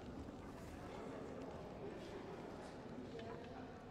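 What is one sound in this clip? Footsteps tread on a stone floor in a large echoing hall.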